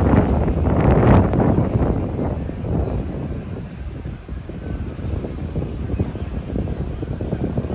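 Water laps gently against a dock.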